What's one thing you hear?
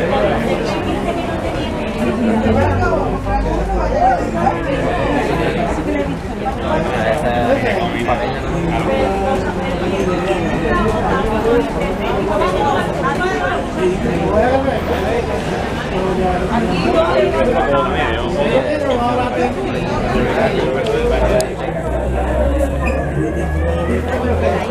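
A crowd of men and women chatter nearby.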